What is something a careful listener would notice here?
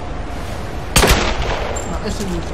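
A pistol fires a single loud shot.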